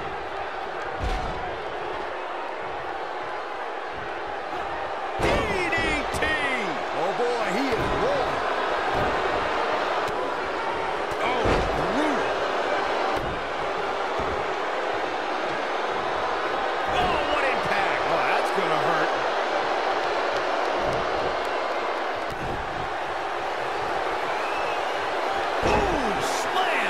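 Heavy bodies slam onto a wrestling ring mat with loud thuds.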